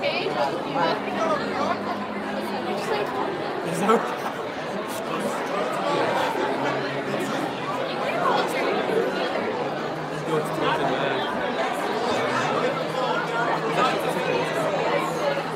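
A large crowd of young people chatters loudly in a large echoing hall.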